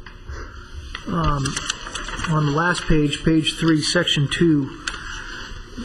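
A middle-aged man speaks calmly into a microphone in a large room.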